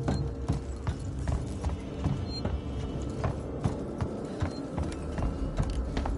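Footsteps clank steadily on metal stairs.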